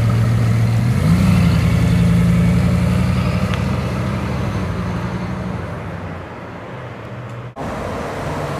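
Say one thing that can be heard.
A sports car drives off and its engine fades into the distance.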